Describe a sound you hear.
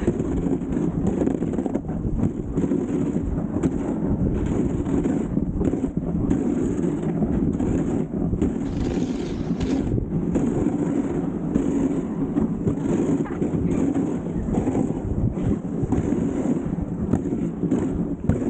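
A dog sled's runners hiss and scrape steadily over packed snow.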